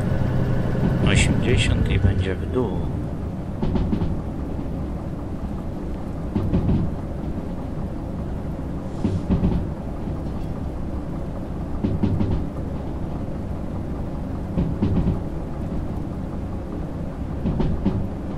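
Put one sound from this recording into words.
A diesel locomotive engine rumbles while running.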